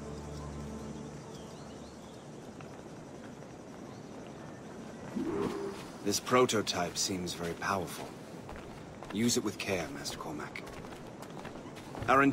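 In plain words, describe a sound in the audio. Footsteps tread softly on grass and earth.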